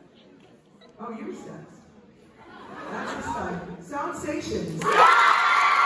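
A woman speaks through a loudspeaker, announcing.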